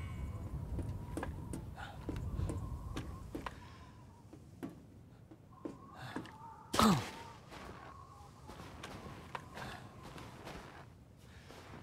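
Footsteps crunch through snow and thud on wooden boards.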